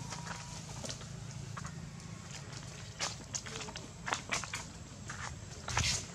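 A small monkey scampers over dry leaves on the ground.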